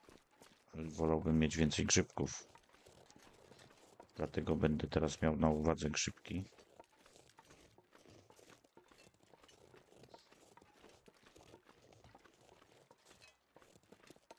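Footsteps crunch softly through snow.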